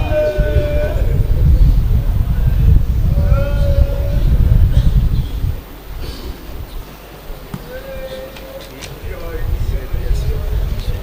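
A man chants loudly through a microphone and loudspeakers.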